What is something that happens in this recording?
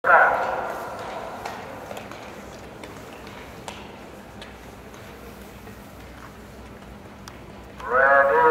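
Skate blades glide and scrape on ice in a large echoing hall.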